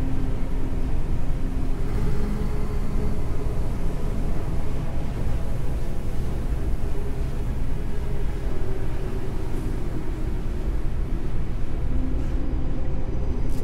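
Heavy boots thud on a metal floor.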